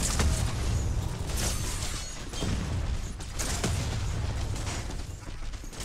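A blade swings with sharp whooshes and hits.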